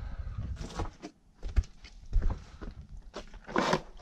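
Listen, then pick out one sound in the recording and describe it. A chainsaw thuds down onto concrete.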